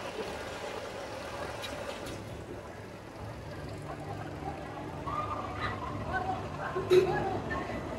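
A roller coaster train rumbles along its track in the distance.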